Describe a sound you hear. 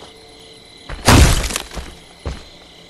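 An axe chops into a wooden door.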